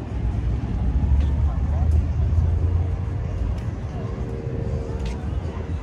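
Footsteps tap on paving nearby.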